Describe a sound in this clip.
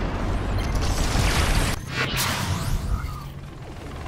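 A blast bursts loudly in a video game.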